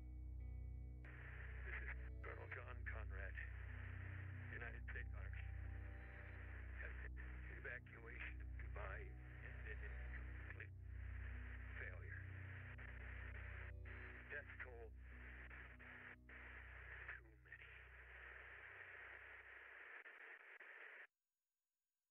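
A man speaks wearily, heard through a crackly radio.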